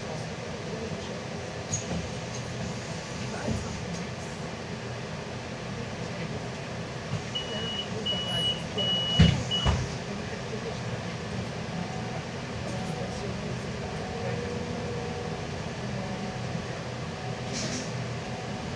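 Tyres rumble on a snowy road.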